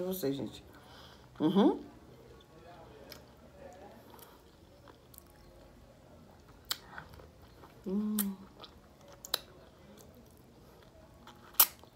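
A woman chews food noisily close by.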